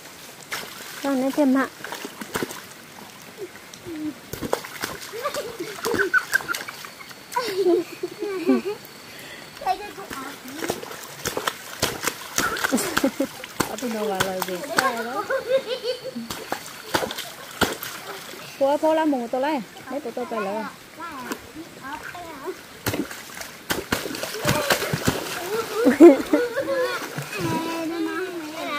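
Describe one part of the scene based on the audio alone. Water splashes as children kick and wade.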